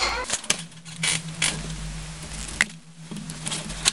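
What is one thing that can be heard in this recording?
A small screwdriver scrapes and clicks against a plastic bulb cover.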